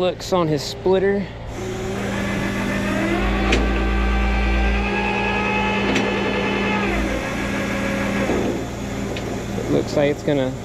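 A truck engine idles with a steady drone.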